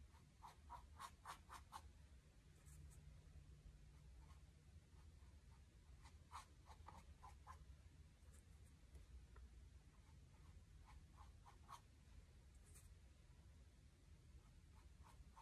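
A paintbrush dabs acrylic paint onto a stretched canvas.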